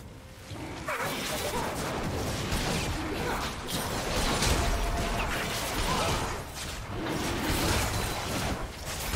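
Magic spells crackle and blast in a busy fantasy battle.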